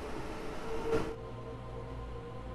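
An electric train's cab hums low inside.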